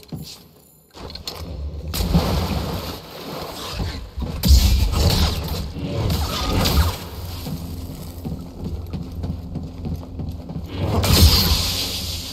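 A lightsaber hums and swishes through the air.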